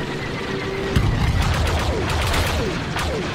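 An explosion bursts loudly.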